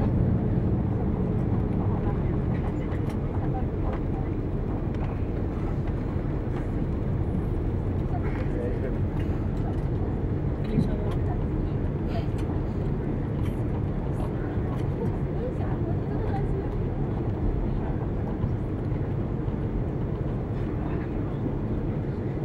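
An airliner rumbles and rattles as it rolls fast along a runway.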